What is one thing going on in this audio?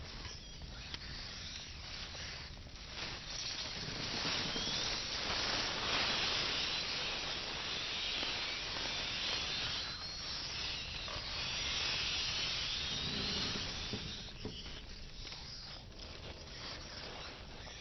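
A torch fire crackles and roars close by.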